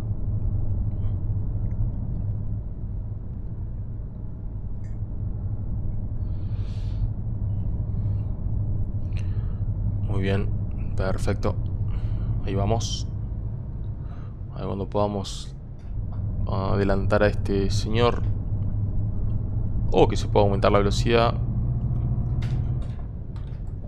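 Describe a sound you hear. A bus engine drones steadily while driving.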